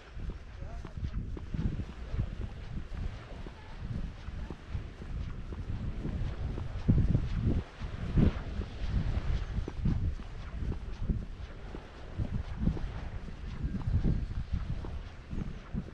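Wind buffets the microphone outdoors in low, gusty rumbles.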